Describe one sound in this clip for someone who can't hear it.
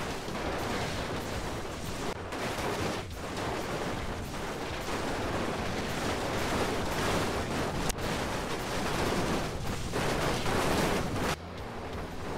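Metal crunches and crumples as huge tyres crush trucks.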